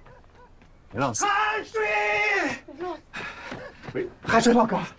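A young man calls out loudly.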